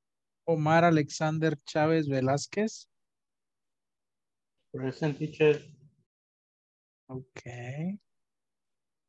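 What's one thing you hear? A young man speaks calmly over an online call, in short bursts with pauses.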